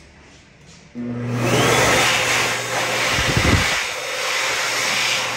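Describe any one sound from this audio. A hand dryer blows air with a loud roar.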